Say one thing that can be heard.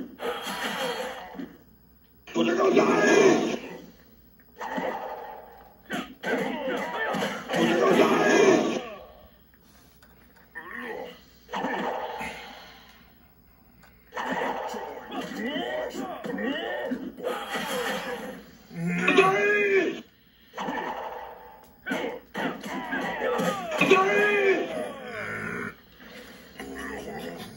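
Punches and kicks land with heavy thuds in a video game fight.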